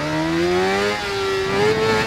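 An inline-four sport bike shifts up a gear, and the engine note drops.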